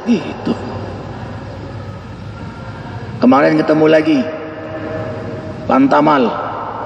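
A man speaks with animation into a microphone, heard through a loudspeaker in an echoing hall.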